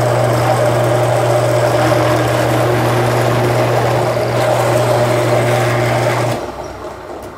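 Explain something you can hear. A drill press whirs loudly as it bores into wood.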